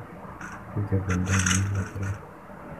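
A gun clicks and rattles as it is picked up.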